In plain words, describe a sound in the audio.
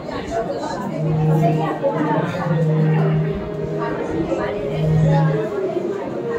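A harmonium plays sustained notes.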